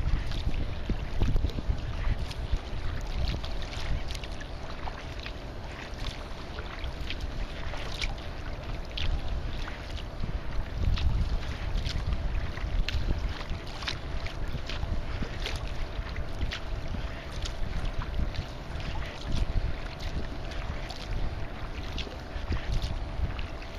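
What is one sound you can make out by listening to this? Small waves lap and splash against a kayak's hull.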